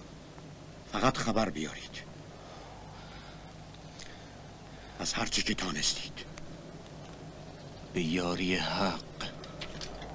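A man speaks in a low voice, close by.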